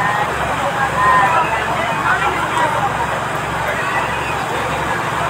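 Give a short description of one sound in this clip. A crowd of people talks and shouts excitedly nearby, outdoors.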